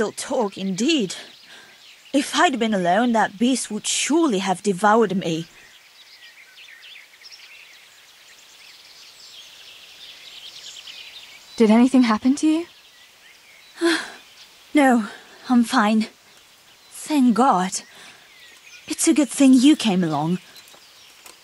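A young woman speaks calmly and earnestly.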